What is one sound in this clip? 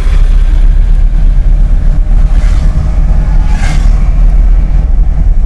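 Wind rushes and buffets against the car.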